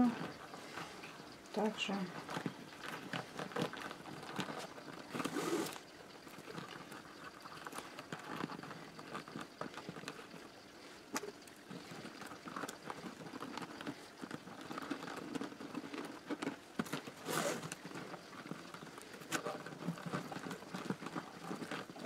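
Thin stiff strips rustle and tick against each other as they are woven.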